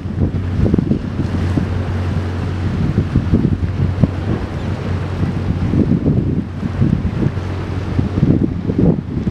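A boat engine drones steadily offshore.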